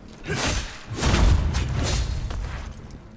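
A heavy blow lands with a wet, crunching thud.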